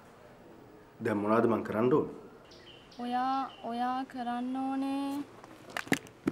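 A young man speaks calmly into a phone.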